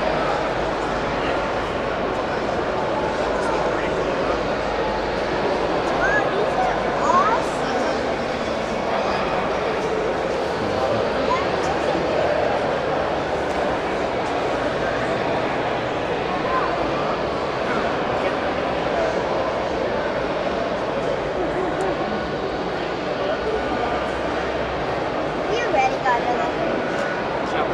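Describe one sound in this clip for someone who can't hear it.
A crowd of people chatters in a large, echoing hall.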